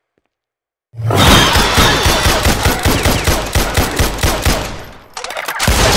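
A pistol fires rapid shots that echo down a hallway.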